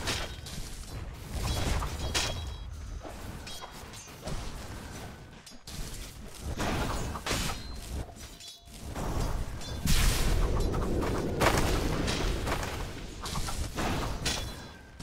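Game spell effects whoosh, crackle and blast during a fight.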